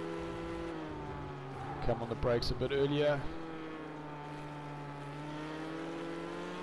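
A race car engine drones steadily at high revs from inside the cockpit.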